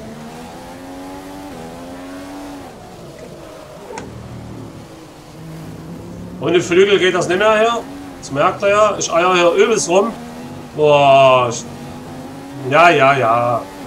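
A racing car engine whines, dropping in pitch as it shifts gears.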